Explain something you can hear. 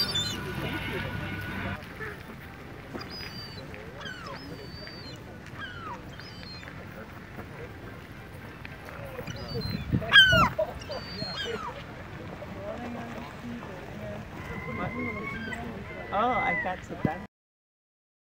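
A herring gull calls with high wailing cries.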